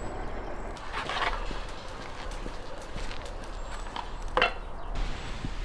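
Footsteps scuff on paving stones.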